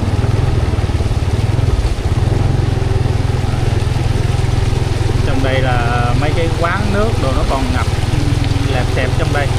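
Water splashes and sloshes underfoot with each step.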